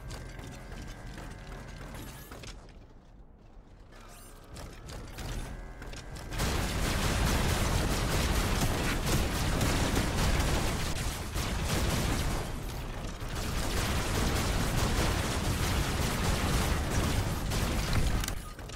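A robot's engine hums as it moves.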